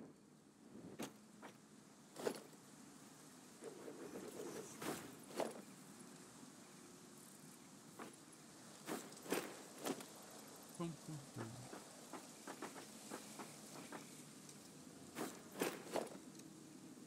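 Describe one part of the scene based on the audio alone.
Short electronic clicks sound as building pieces snap into place.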